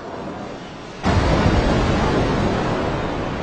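A whale crashes into the water with a loud, roaring splash.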